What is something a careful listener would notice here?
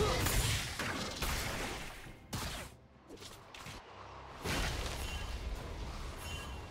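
Magic spell effects whoosh and crackle in a fast fight.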